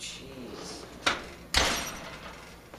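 An oven door thumps shut.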